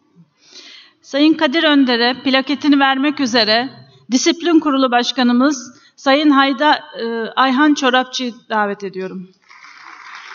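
A woman speaks calmly into a microphone, heard over loudspeakers in a large hall.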